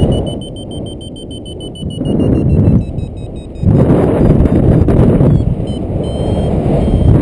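Wind rushes past a paraglider in flight, rising and falling in gusts.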